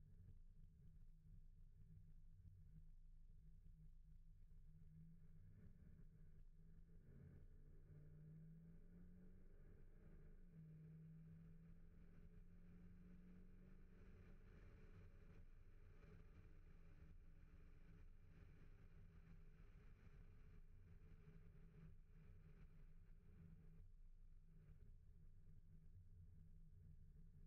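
Wind rushes past a moving car.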